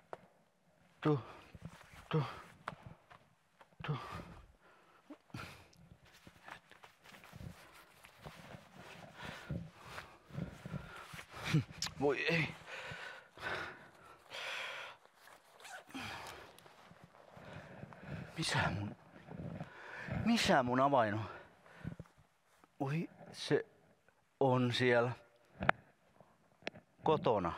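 An elderly man talks to himself with animation, close by.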